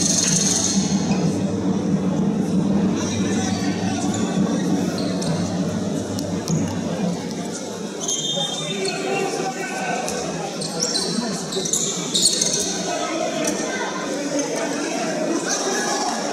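A crowd of spectators murmurs and calls out.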